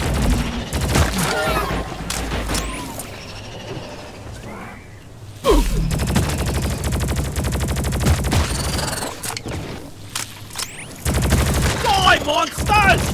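A rapid-fire gun shoots in bursts.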